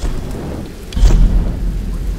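A loud bang bursts with a deep rumble.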